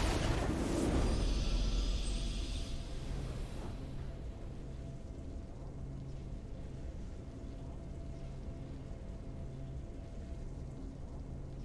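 A triumphant victory fanfare swells and then fades into soft music.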